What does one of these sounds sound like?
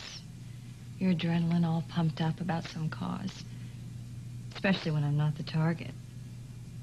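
A woman speaks close by in a tense, emotional voice.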